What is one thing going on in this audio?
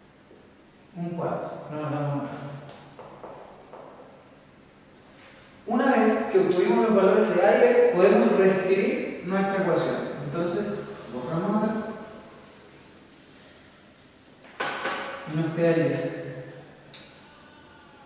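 A young man speaks calmly, explaining, close by.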